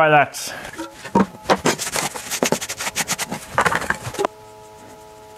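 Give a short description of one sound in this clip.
A metal can clinks and rattles as it is handled.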